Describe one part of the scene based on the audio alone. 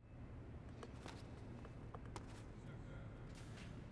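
Boots step on a hard floor.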